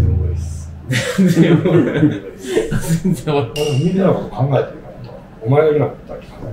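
Several men talk with animation close by.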